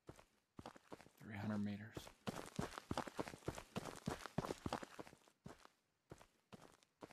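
Footsteps tread quickly over grass and dirt.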